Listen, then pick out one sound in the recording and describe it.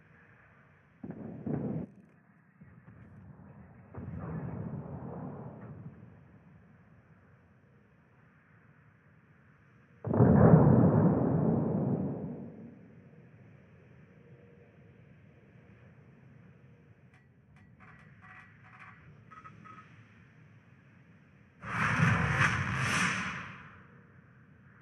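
Heavy naval guns fire in loud booming salvos.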